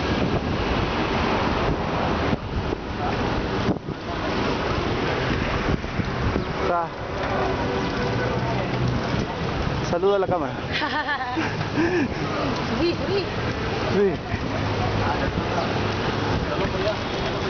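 Wind rushes loudly past a moving microphone outdoors.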